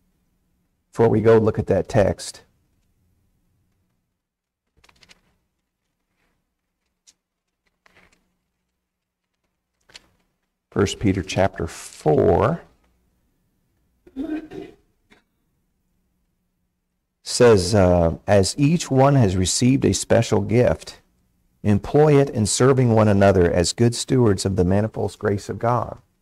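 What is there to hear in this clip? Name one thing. A man speaks calmly through a microphone, with pauses between phrases.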